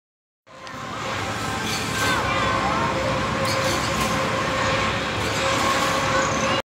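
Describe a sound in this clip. A fairground ride whirls and rumbles steadily.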